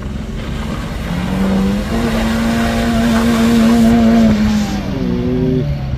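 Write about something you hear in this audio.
A small pickup engine revs hard, rising in pitch.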